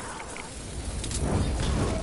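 Gunshots fire in quick bursts in a video game.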